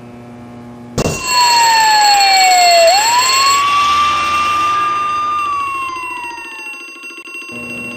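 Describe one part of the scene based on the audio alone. A fire engine siren wails loudly, then falls away.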